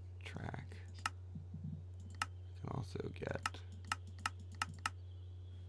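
Short, sharp clicks come one after another at an uneven pace.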